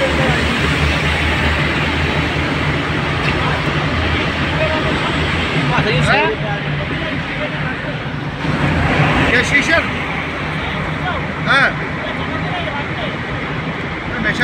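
Tyres roar on the road, echoing in a tunnel.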